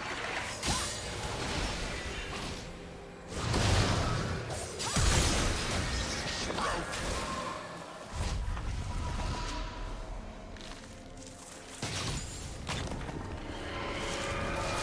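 Game spell effects whoosh and burst during a fight.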